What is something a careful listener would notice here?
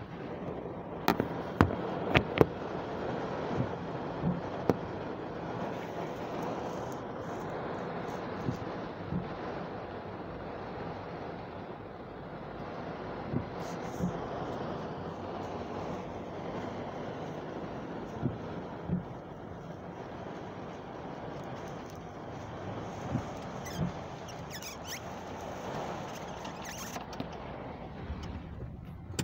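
Heavy rain drums steadily on a car roof and windows, with scattered louder drops.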